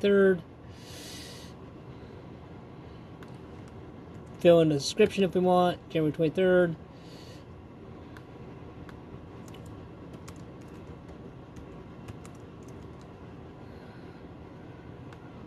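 Keys click softly on a keyboard.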